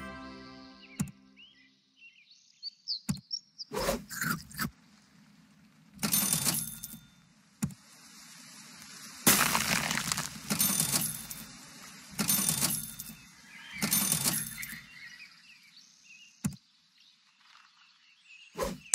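Game menu clicks and pops sound now and then.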